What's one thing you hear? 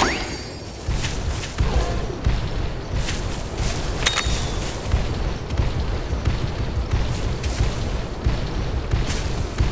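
Heavy footsteps of a large beast thud quickly and steadily as it runs.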